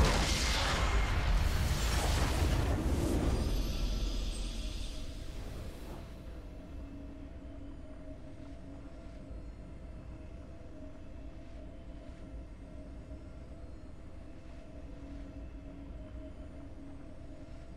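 A triumphant game fanfare swells and then settles into soft music.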